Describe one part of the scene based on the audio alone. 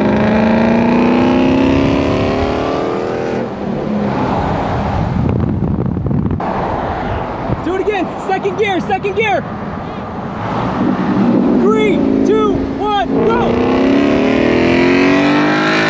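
A sports car's engine roars loudly close by, rising and falling in pitch.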